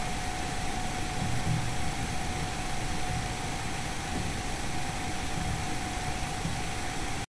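Jet engines whine steadily at idle.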